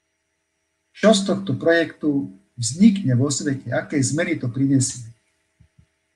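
A man speaks calmly through a microphone in an online call.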